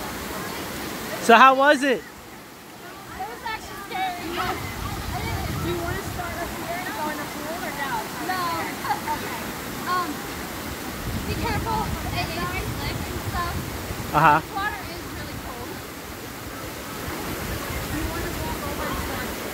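A young woman talks and laughs close by, outdoors.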